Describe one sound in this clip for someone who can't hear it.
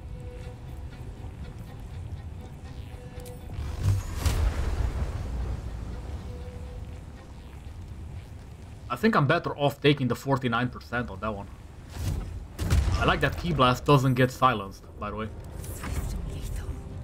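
A crackling electric spell buzzes and zaps.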